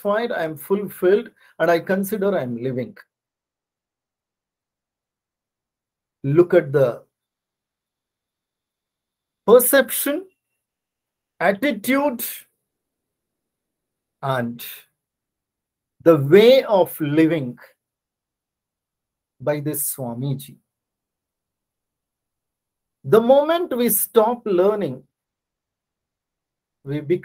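A middle-aged man speaks calmly in short bursts over an online call, with pauses between phrases.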